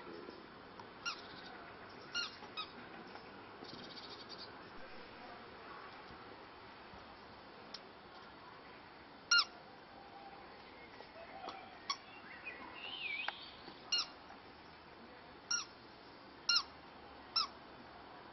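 A rubber toy squeaks in short bursts as a puppy chews it.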